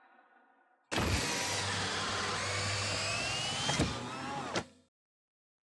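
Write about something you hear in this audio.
A spaceship engine hums and roars.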